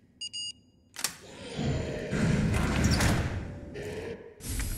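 A metal locker door clanks and swings open.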